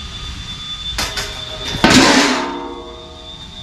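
A thin metal sheet clatters as it is dropped onto the ground.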